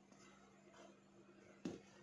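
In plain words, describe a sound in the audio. A metal spoon scrapes inside a tub.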